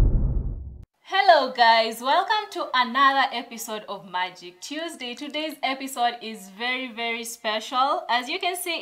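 A woman speaks cheerfully and with animation, close to a microphone.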